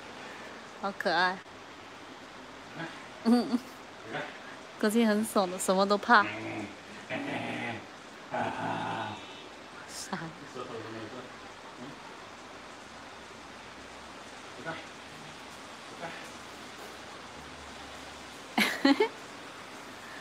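A young man talks playfully and excitedly, close by.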